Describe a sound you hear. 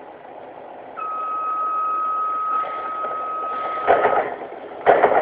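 A door warning tone beeps steadily.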